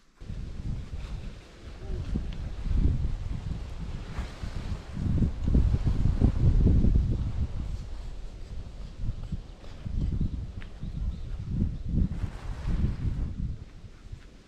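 Nylon tent fabric flaps and rustles in the wind.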